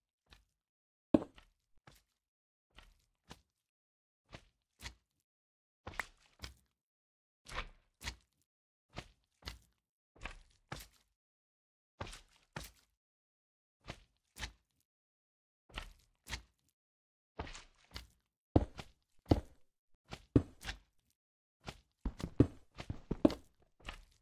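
Footsteps tap on stone in short bursts.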